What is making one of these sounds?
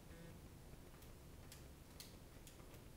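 Calculator buttons click as they are pressed.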